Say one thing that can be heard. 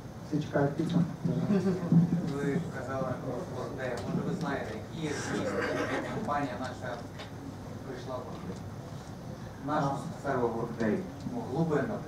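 A man speaks calmly into a microphone over loudspeakers in a large room.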